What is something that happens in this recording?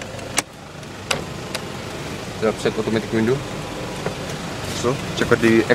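A car window motor whirs as the glass moves.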